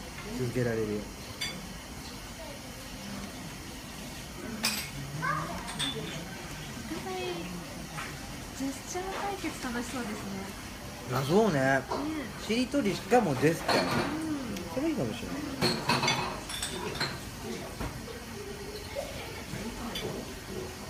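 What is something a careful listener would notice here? A young woman talks close by, in an animated way.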